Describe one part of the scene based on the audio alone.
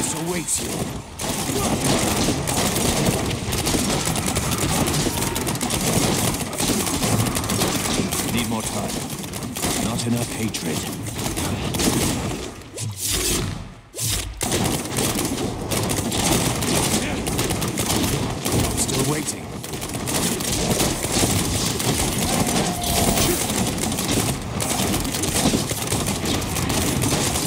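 Fiery blasts and crackling bursts go off rapidly in a fast fight.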